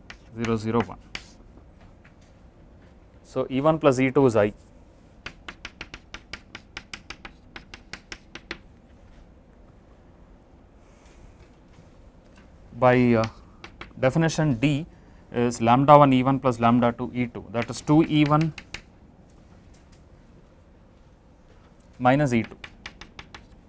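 A man speaks calmly through a clip-on microphone, in short bursts with pauses.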